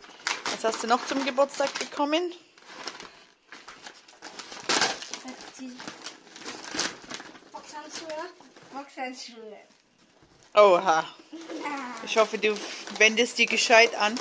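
Wrapping paper crinkles and rustles as it is torn open.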